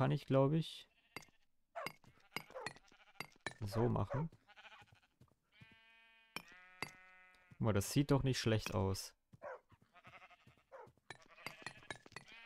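A pickaxe taps repeatedly on stone.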